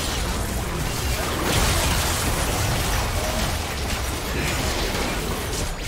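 Game impacts thud and clash rapidly.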